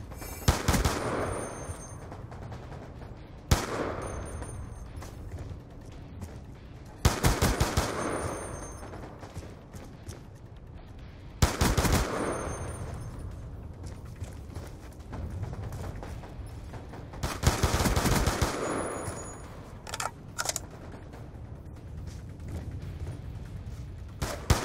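Gunfire from a rifle bursts out in short volleys and echoes away.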